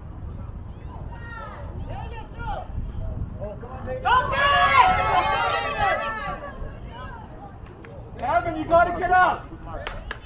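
Young players shout and call to each other across an open field.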